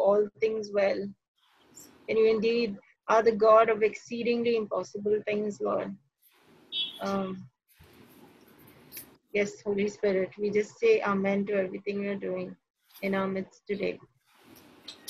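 A woman sings through a small microphone over an online call.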